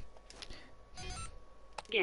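Soft electronic beeps chirp from a phone menu.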